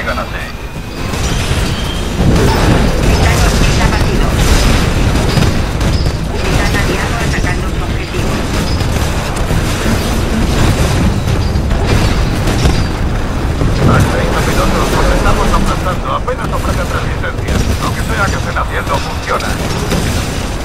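Heavy automatic guns fire in rapid bursts.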